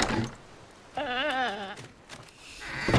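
A rooster squawks in a wobbling cry.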